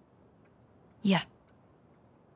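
A teenage girl answers briefly and quietly.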